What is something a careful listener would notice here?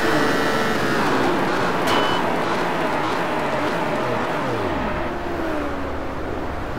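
A sports car engine winds down as the car slows sharply.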